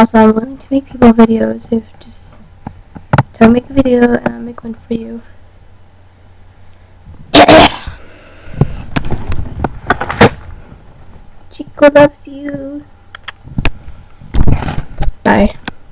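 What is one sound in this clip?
A young woman speaks close to a microphone, casually and with animation.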